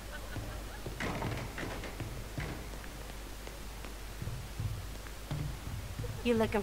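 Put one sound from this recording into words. Footsteps thud softly on a floor.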